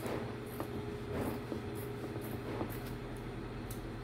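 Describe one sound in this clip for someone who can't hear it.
Scissors snip through fabric.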